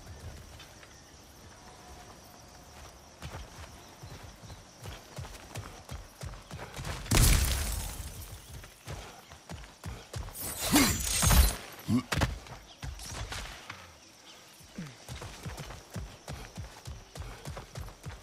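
Heavy footsteps crunch on dry ground.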